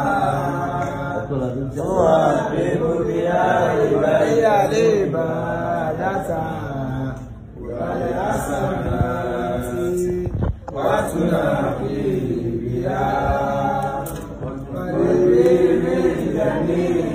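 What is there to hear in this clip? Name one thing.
A group of men chant and sing together loudly nearby.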